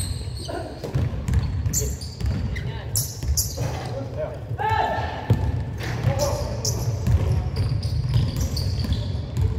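A basketball bounces on the court, echoing in a large hall.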